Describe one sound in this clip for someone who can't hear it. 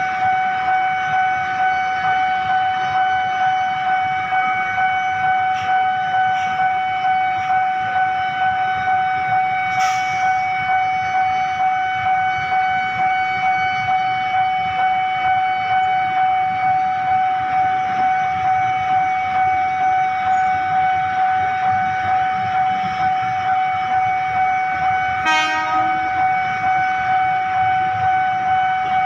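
A railway crossing bell rings steadily in quick, even pulses.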